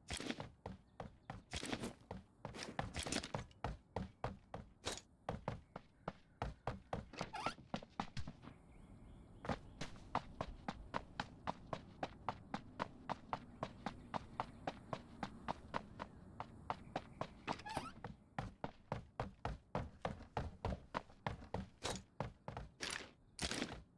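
Quick footsteps run across wooden floors and pavement.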